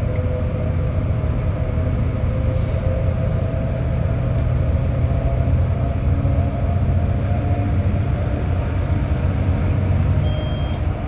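A bus engine rumbles steadily from inside the cabin.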